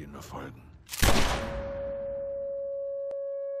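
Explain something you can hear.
A gunshot bangs loudly and echoes away.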